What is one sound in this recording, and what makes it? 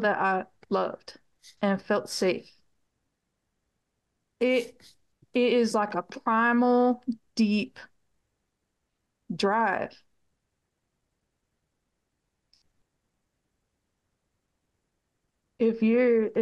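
A middle-aged woman speaks calmly over an online call, with pauses.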